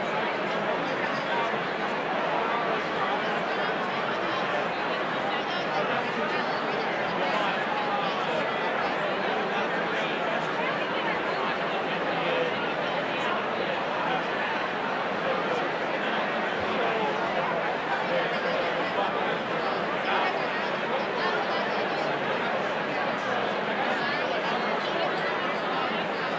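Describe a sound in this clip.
A large crowd of men and women chatters all around in a big echoing hall.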